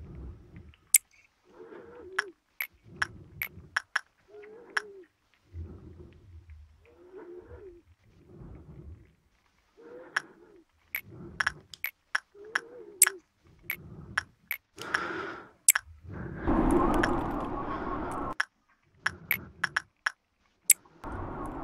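Sharp interface clicks sound again and again as menus open and close.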